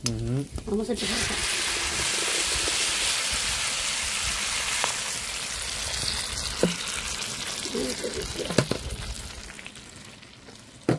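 A thick sauce pours with a splashing, hissing rush into a clay pot.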